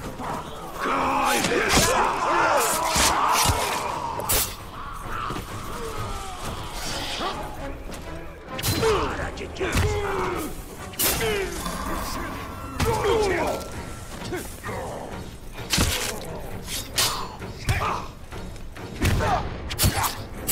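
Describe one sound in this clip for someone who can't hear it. Swords clash and slash in a game fight.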